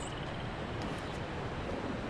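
Footsteps run across a wooden walkway.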